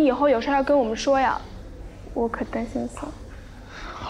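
A young woman speaks gently, close by.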